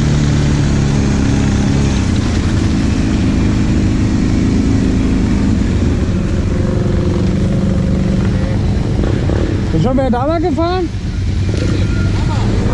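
Other quad bike engines rumble nearby.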